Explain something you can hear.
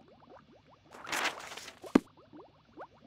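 A book page turns with a quick rustle.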